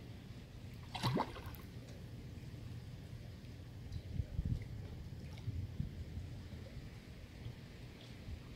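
Water sloshes and splashes gently close by.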